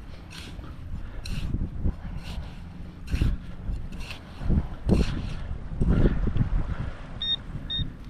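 A metal scoop digs and scrapes through sand.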